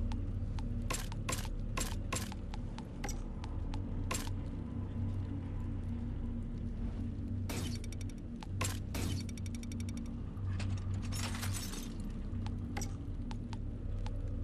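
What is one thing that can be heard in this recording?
Menu clicks and swishes sound as items are browsed.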